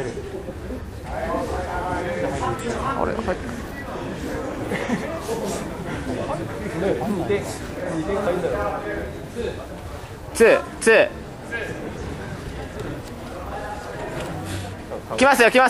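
Several men nearby call out and shout encouragement in a large echoing hall.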